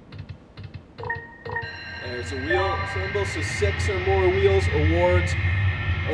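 A slot machine plays bright chiming jingles.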